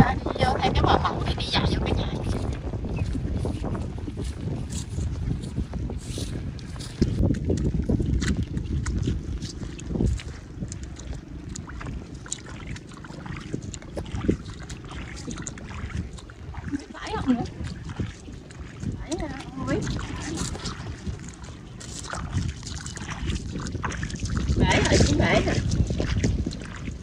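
Footsteps squelch through wet mud.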